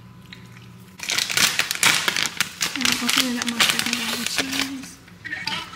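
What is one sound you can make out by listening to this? A plastic bag rustles as it is shaken.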